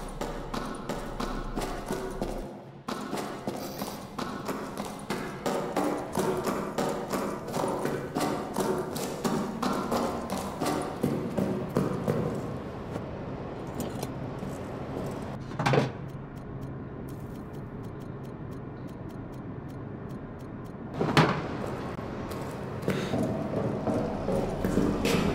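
Footsteps thud steadily on a wooden floor.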